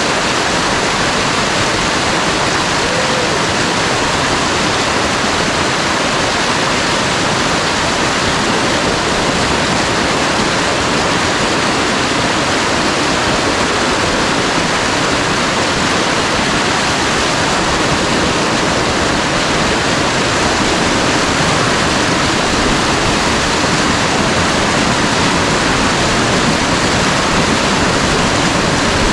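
Water rushes and splashes loudly over rocks close by.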